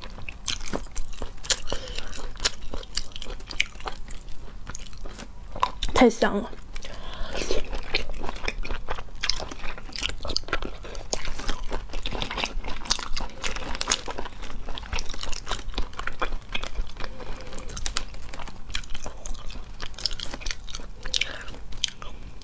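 A young woman slurps and chews sea snails close to a microphone.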